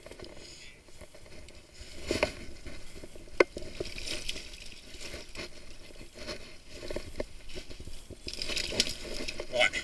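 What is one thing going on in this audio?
Muddy water splashes and sloshes close by.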